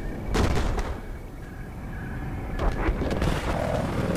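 A helicopter's engine and rotor drone loudly nearby.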